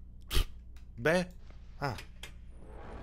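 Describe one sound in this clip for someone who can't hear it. A young man exclaims briefly into a close microphone.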